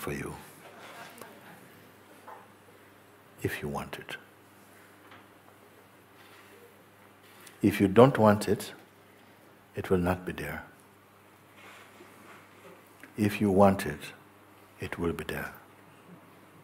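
An older man speaks calmly and slowly into a close microphone, with long pauses.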